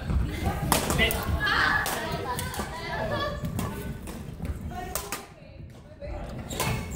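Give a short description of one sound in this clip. Badminton rackets smack a shuttlecock in a large echoing hall.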